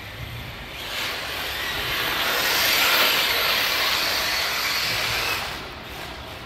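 Tyres of a toy car scrape and skid on dusty ground.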